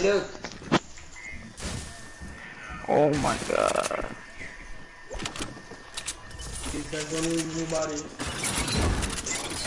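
Footsteps patter quickly on wood and stone.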